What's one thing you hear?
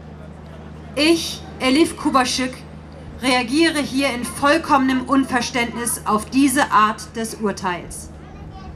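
A woman reads out calmly through a microphone and loudspeakers, outdoors.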